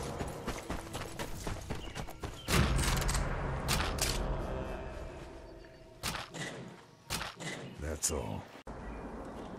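Footsteps crunch over dirt and leaves.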